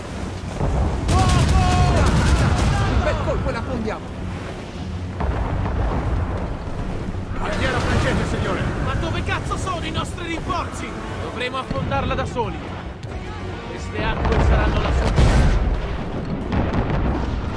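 Cannons boom and rumble in a sea battle.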